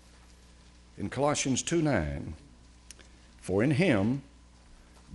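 An elderly man speaks slowly and calmly through a microphone.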